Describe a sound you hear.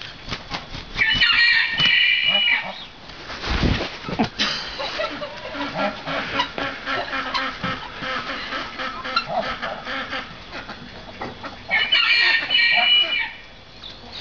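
A young goat bleats loudly and shrilly nearby.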